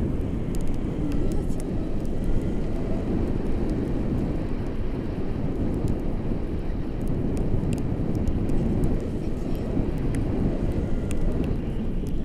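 Strong wind roars and buffets loudly against a microphone.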